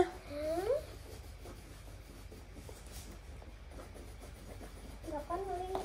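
Pencils scratch softly on paper.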